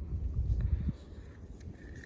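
A hand digs through dry sand.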